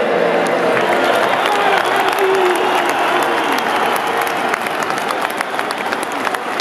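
Fans clap their hands in quick scattered claps.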